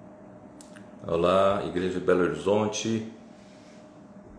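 An elderly man speaks briefly and calmly, close by, through an earphone microphone.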